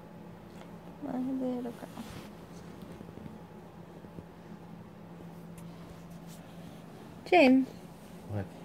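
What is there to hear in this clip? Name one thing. A baby whimpers softly close by.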